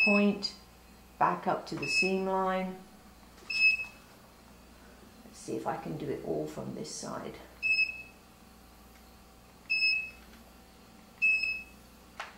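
An electronic device beeps briefly now and then.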